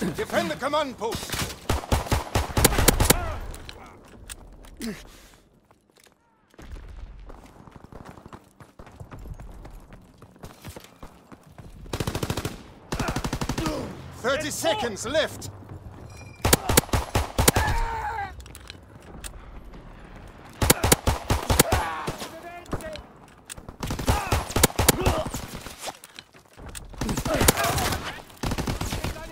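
Gunshots crack out in rapid bursts, close by.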